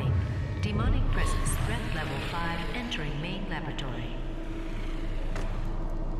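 A glowing portal swirls open with a deep roaring whoosh.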